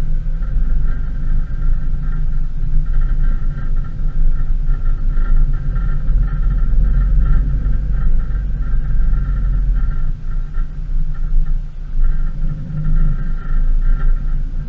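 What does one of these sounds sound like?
Tyres roll over a dirt road with a steady rumble.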